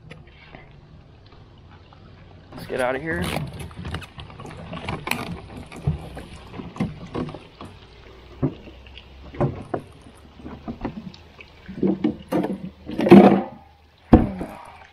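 Water laps gently against a boat hull.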